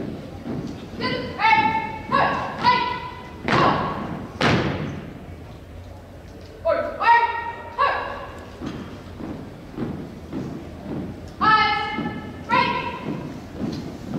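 A man shouts drill commands loudly, echoing in a large hall.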